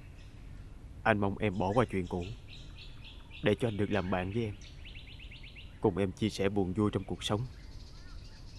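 A man speaks calmly and seriously, close by.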